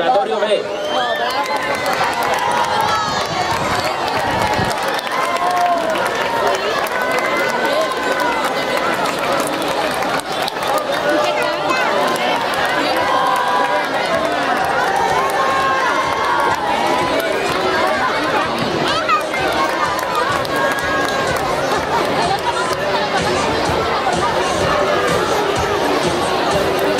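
A crowd of children and adults chatters and shouts nearby.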